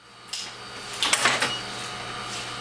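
A centrifuge lid clicks open.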